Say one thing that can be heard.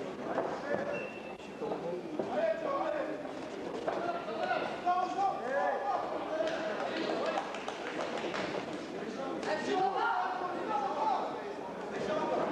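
Punches thud against gloves and bodies.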